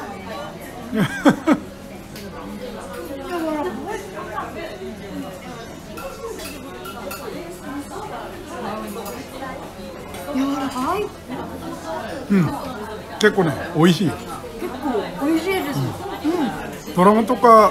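People chatter quietly in the background.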